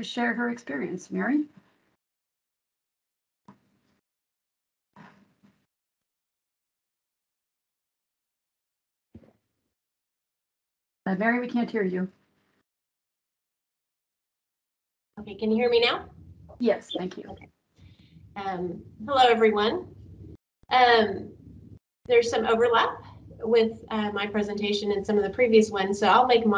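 A woman speaks calmly over an online call, with pauses.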